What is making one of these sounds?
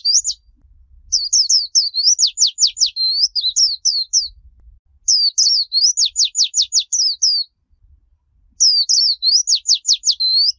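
A small bird sings a rapid, high twittering song in repeated bursts.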